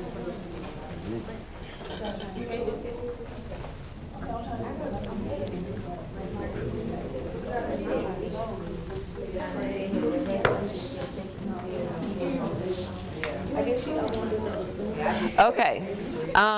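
Several young people chat quietly in a room.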